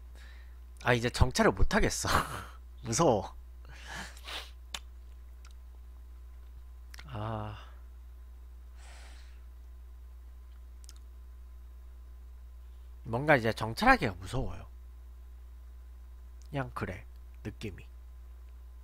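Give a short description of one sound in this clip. A young man talks casually into a close microphone, in short bursts.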